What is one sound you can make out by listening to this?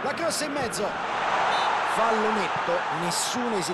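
A stadium crowd swells into a loud cheer.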